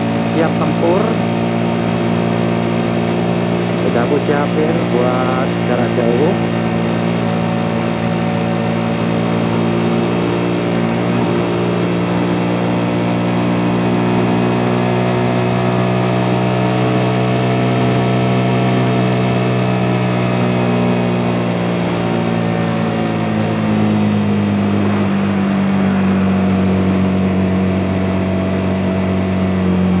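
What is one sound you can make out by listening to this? A motorcycle engine hums steadily close by, its pitch slowly sliding as the rider changes speed.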